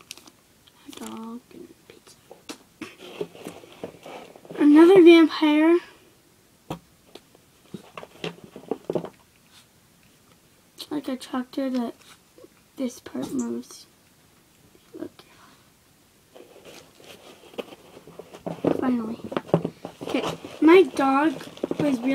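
A young girl talks close by, with pauses.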